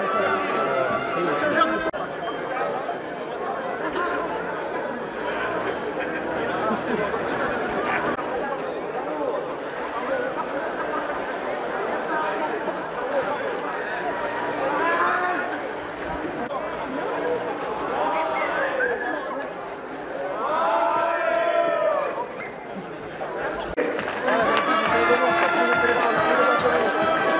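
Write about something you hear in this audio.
A large crowd talks and calls out outdoors.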